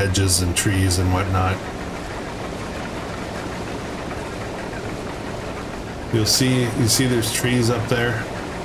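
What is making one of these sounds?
A combine harvester engine rumbles steadily.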